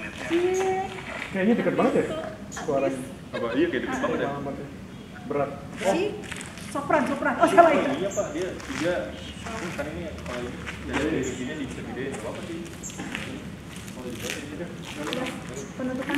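A woman answers calmly from a few steps away.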